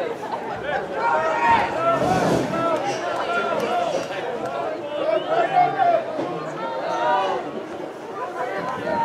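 Many people chatter and call out nearby.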